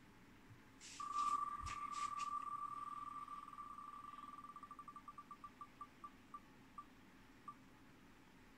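A spinning prize wheel clicks rapidly from a laptop speaker, slowing until it stops.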